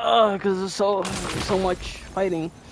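A crystal cracks and breaks apart.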